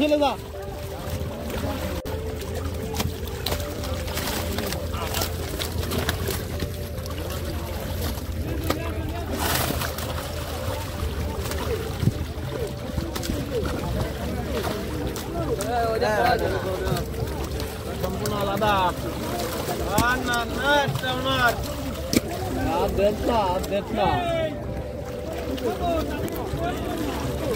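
Fish splash and flap in shallow water.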